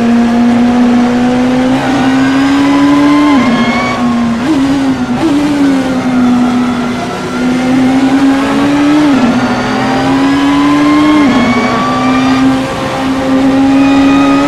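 A racing car engine roars loudly, rising in pitch as it speeds up and dropping sharply with each gear change.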